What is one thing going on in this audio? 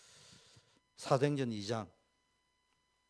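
A middle-aged man speaks briefly into a close microphone.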